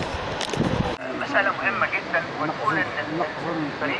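Men and women chat nearby.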